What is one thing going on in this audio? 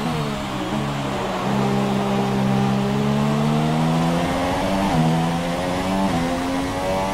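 A racing car engine whines at high revs, with quick gear shifts.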